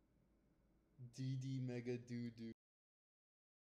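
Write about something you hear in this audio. A young man speaks into a close microphone.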